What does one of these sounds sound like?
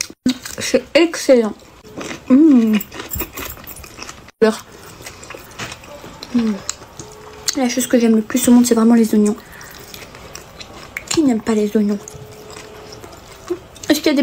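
A young woman chews food wetly and smacks her lips.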